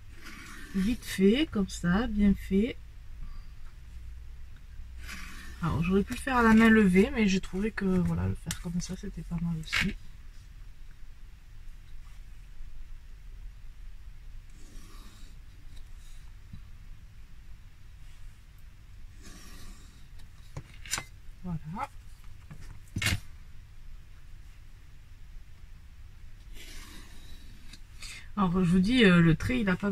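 A pointed tool scratches along paper.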